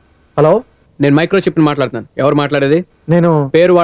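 A young man talks into a phone.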